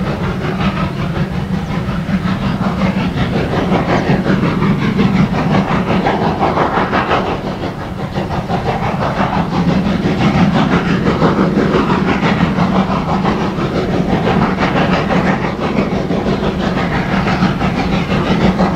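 A steam locomotive chuffs steadily in the distance.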